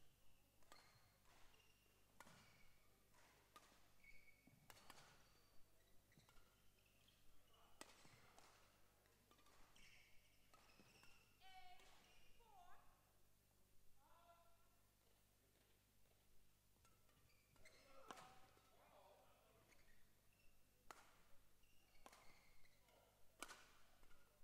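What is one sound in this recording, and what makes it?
Badminton shuttlecocks are struck with sharp pops by rackets in a large echoing hall.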